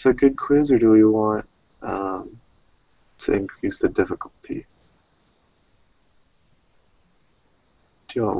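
A man speaks calmly into a nearby microphone, with pauses.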